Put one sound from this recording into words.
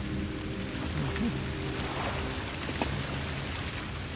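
Bubbles rush and fizz up through water nearby.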